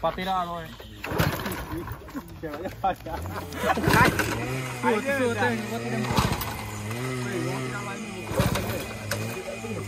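A young man kick-starts a small motorcycle engine.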